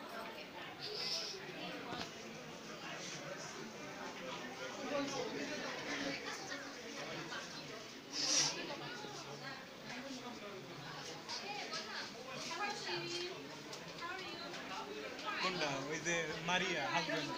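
Several young people talk and chatter nearby in a room.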